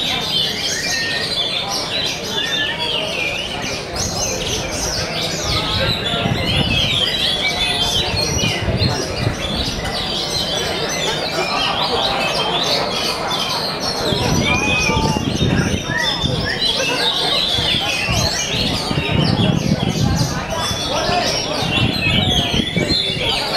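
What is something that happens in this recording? Caged birds chirp and whistle busily in a large echoing hall.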